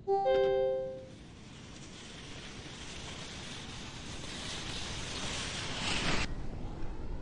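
Skis hiss as they slide down an icy track.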